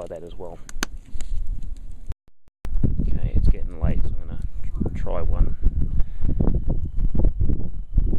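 A wood fire crackles beneath a pot.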